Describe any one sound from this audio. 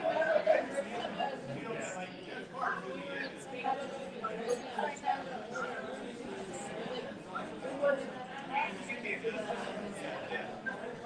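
A man and a woman talk nearby.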